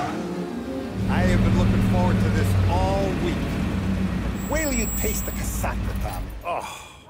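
An older man talks cheerfully nearby.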